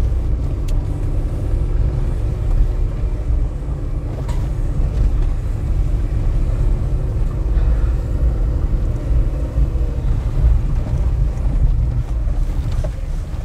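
A vehicle rattles and clunks over bumps.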